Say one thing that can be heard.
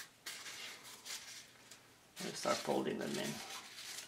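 A paper towel rustles and crinkles as it dabs.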